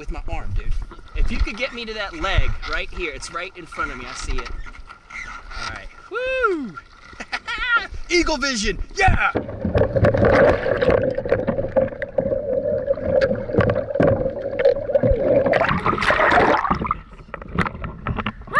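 Water splashes and gurgles close by.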